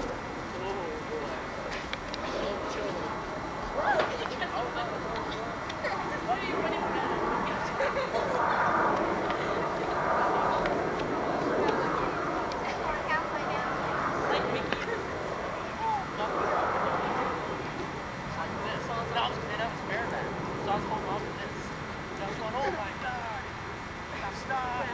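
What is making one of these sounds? A horse's hooves thud softly on grass.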